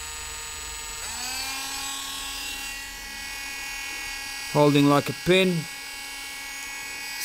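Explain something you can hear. A small rotary tool whirs up and runs with a steady high hum.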